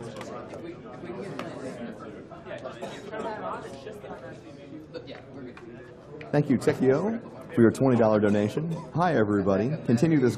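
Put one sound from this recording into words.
Several young men chat quietly in the background.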